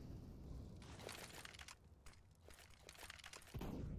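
Footsteps clatter quickly on a hard floor.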